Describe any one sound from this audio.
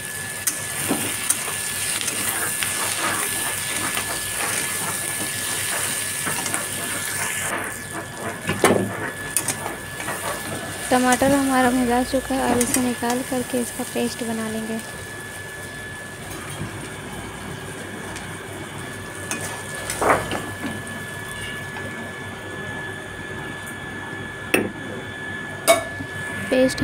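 A metal spatula scrapes and clanks against a pan.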